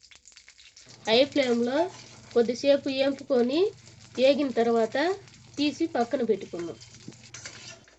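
A metal spatula scrapes and stirs chilies in a pan.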